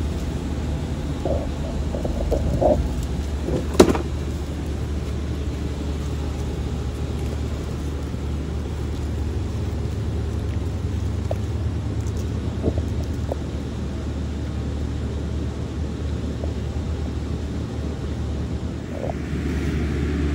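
A lizard's claws scratch softly on concrete.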